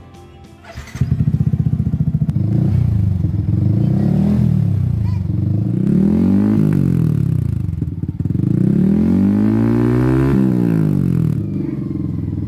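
A motorcycle engine rumbles with a deep, loud idle.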